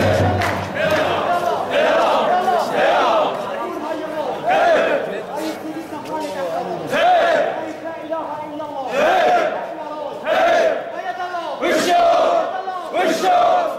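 A man shouts chants to a crowd from above.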